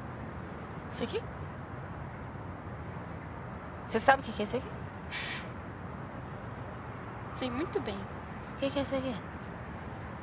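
A second young woman answers quietly and close by.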